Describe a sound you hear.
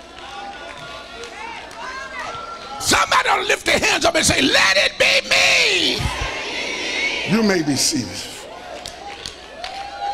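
A man preaches with fervour into a microphone, his voice rising to loud cries and echoing in a large hall.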